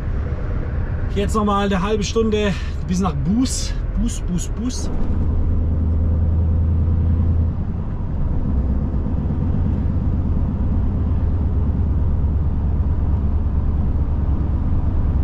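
A truck engine rumbles steadily inside the cab.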